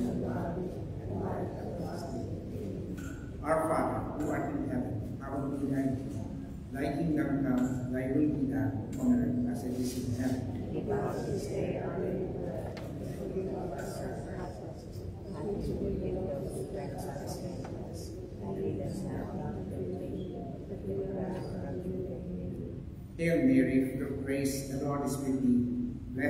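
A man sings slowly through a loudspeaker in a large echoing hall.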